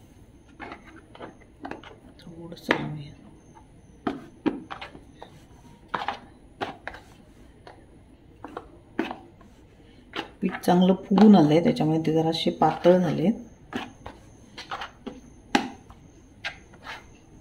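A wooden rolling pin knocks and rolls against a board.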